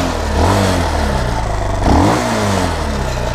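A motorcycle engine revs up sharply a few times and drops back.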